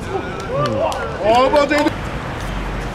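Young men shout across an open outdoor court.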